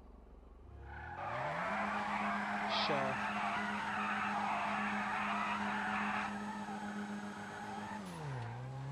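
A car engine starts up and idles with a steady hum.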